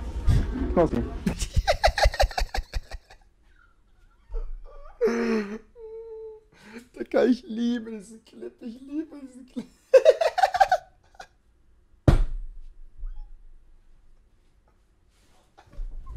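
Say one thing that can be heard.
A man laughs loudly.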